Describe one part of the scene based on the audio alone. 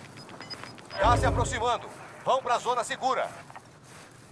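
A warbling electronic warning alert sounds in bursts.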